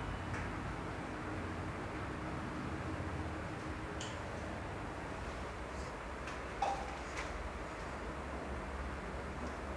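A man wipes a whiteboard with a duster, rubbing softly.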